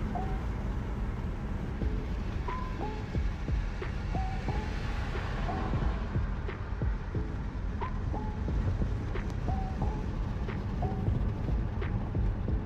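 A car engine hums and tyres rumble on the road while driving.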